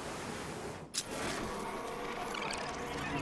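An electronic scanning tone hums steadily.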